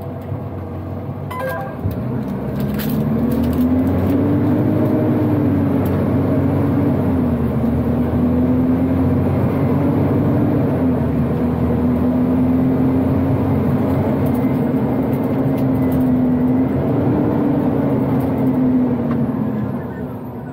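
The cab rattles and creaks over a bumpy dirt road.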